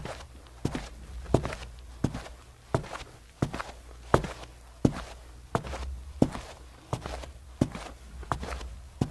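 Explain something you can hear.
Hard-soled shoes tap in steady footsteps.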